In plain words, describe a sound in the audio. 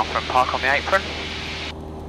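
A young man speaks briefly over a headset intercom.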